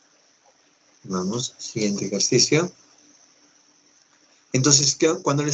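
A man speaks calmly through a microphone on an online call.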